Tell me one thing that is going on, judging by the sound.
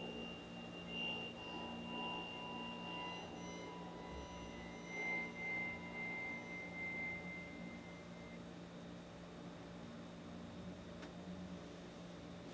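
A grand piano plays a soft, slow melody.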